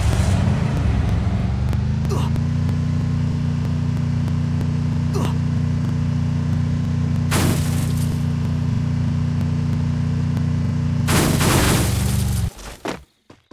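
A car engine hums steadily as a vehicle drives over rough ground.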